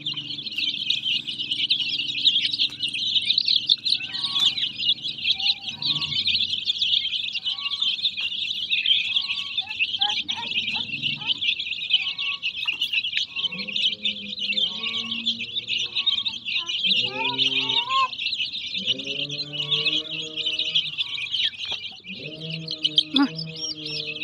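Many chicks peep loudly and constantly, close by.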